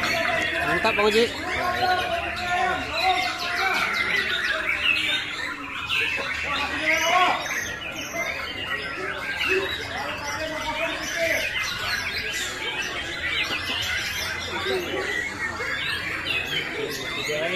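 Many caged songbirds chirp and warble all around.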